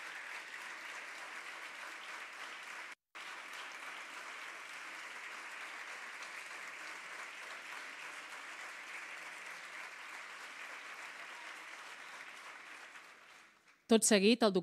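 A large audience applauds steadily.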